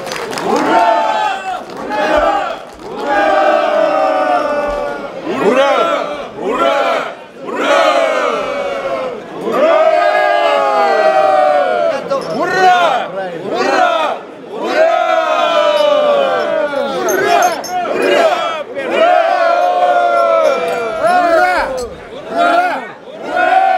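A group of men sing loudly together close by.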